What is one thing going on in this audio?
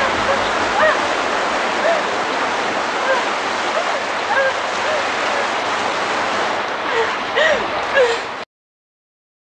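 Water rushes and roars in a loud torrent.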